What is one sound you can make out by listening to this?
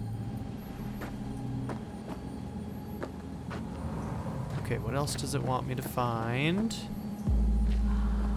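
Footsteps crunch over gravel and grass.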